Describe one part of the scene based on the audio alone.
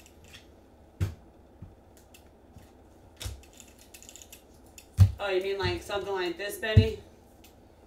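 Trading cards click and rustle as they are handled.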